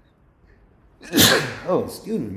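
A middle-aged man bursts out laughing.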